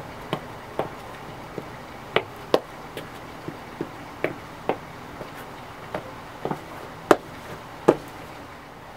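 Hard-soled shoes step on a stone floor with sharp clicks.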